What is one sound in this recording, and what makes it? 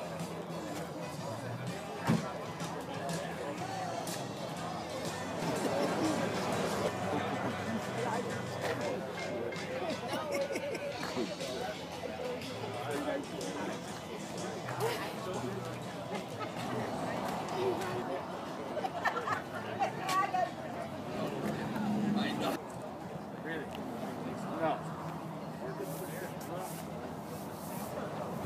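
A crowd of men and women chat at a distance outdoors.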